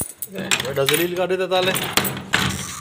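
A metal door bolt clicks and rattles.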